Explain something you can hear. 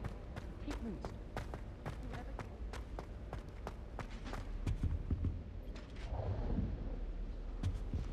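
Footsteps tap quickly on a stone floor.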